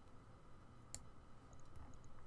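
A soft interface click sounds as an item is selected.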